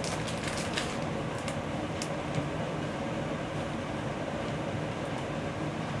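A sheet rustles as it is spread out.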